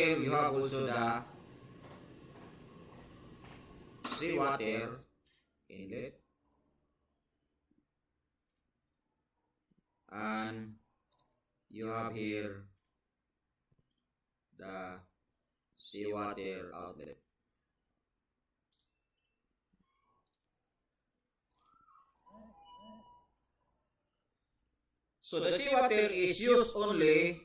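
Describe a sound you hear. A man speaks calmly in short phrases over an online call, with pauses between them.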